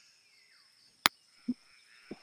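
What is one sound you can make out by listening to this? A putter taps a golf ball with a sharp click.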